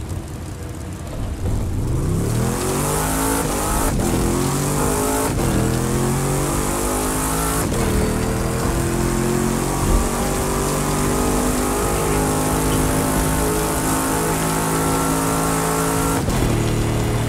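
A racing car engine revs up hard and climbs through the gears, its pitch rising and dropping back with each shift.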